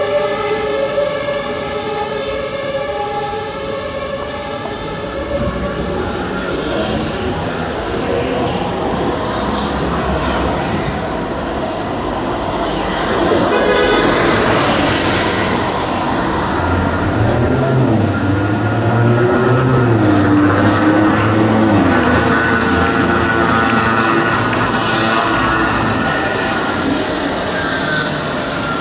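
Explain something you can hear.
Street traffic rumbles steadily nearby.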